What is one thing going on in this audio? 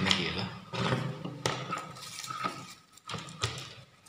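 Tools clatter and knock on a wooden table.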